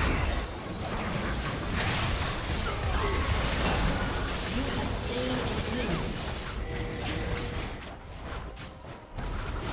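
Game spells crackle and blast during a fight.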